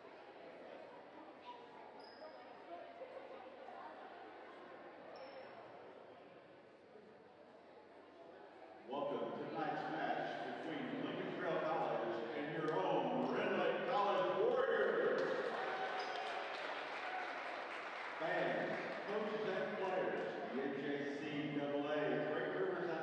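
Voices of a crowd murmur and chatter in a large echoing hall.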